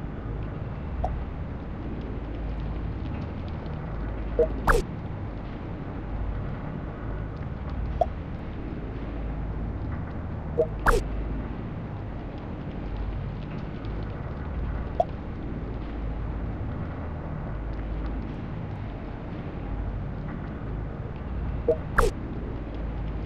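Short electronic chimes sound from a game interface.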